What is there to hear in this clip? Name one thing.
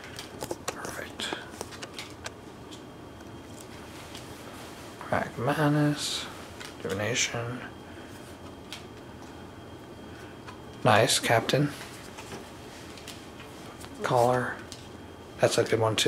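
Playing cards slide and tap softly against each other.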